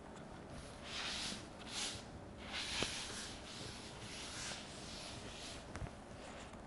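A board eraser rubs across a chalkboard.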